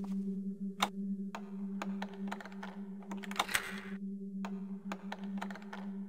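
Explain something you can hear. A lockpick clicks in a door lock.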